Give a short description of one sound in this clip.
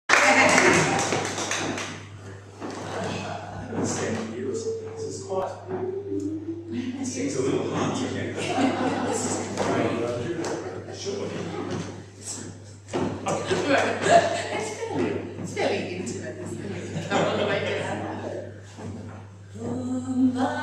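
A man talks in an echoing room.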